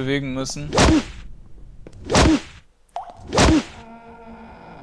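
Loud magical blasts whoosh and fade, three times in a row.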